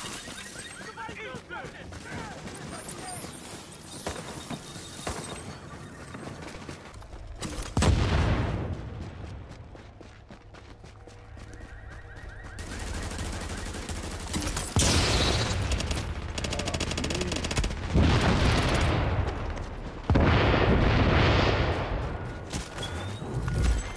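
Footsteps crunch through snow at a run.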